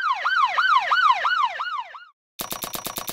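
A police siren wails in quick, repeating sweeps and then fades.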